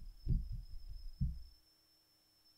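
Playing cards tap and shuffle softly on a wooden table.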